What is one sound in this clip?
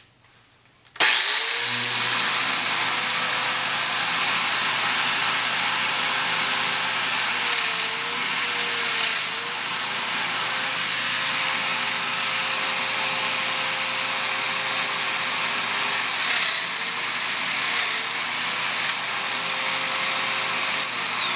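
A power tool whines loudly as it cuts into wood, its pitch dipping under load.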